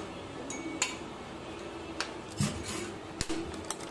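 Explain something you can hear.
A metal scoop clinks against a paper cup.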